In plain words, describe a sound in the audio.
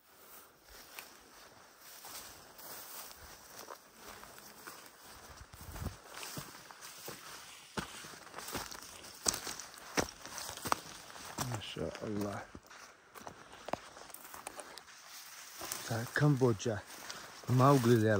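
Leaves and branches rustle and snap as someone pushes through dense brush.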